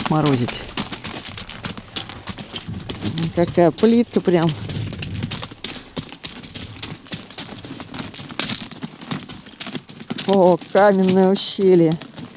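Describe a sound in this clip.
Footsteps crunch on loose slate stones.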